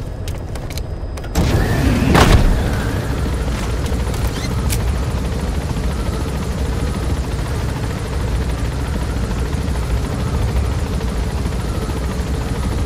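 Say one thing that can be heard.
A helicopter's engine and rotor drone steadily with a deep rumble.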